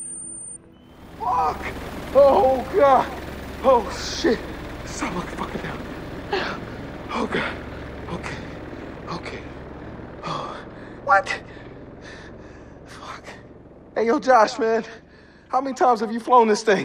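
A man shouts and swears in panic.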